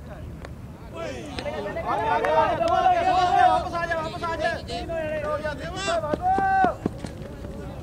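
Several men shout loudly together across an open field.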